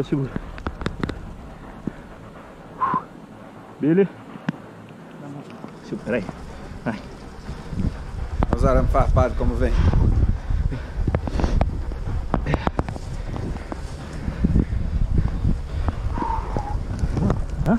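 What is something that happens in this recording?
Tall dry grass rustles as a man pushes through it.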